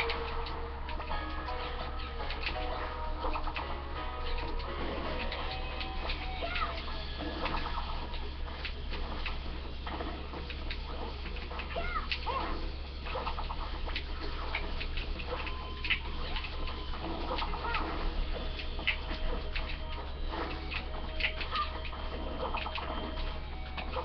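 Video game music plays steadily through a small speaker.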